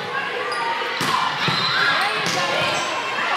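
A volleyball thumps off a player's arms.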